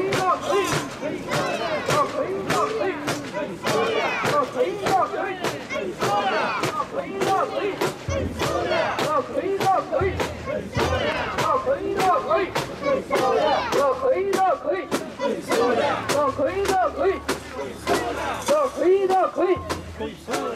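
A crowd of men chant loudly together in rhythm close by.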